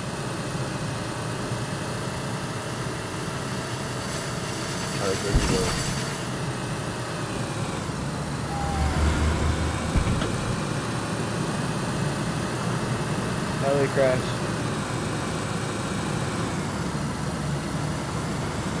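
Tyres rumble over a bumpy dirt road.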